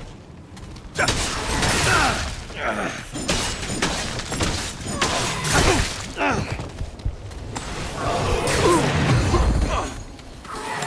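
Blades slash and swoosh through the air in a fight.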